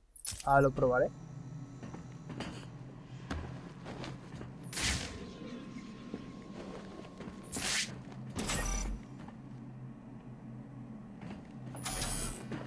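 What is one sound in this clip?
Footsteps clank on a metal grate.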